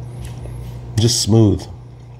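A man says a few words up close, loud and with emphasis.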